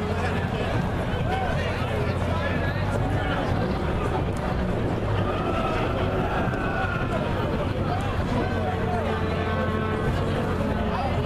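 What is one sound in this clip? A fire engine's diesel engine rumbles as it rolls slowly along the street.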